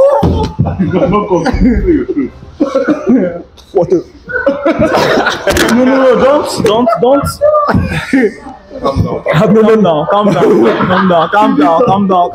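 Young men laugh loudly.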